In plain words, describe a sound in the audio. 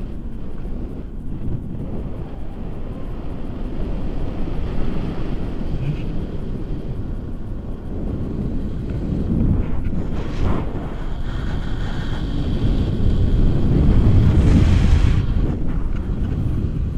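Wind rushes and buffets loudly against a microphone outdoors.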